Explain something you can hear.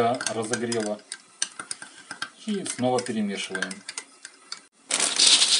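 A metal spoon stirs and clinks in a glass mug.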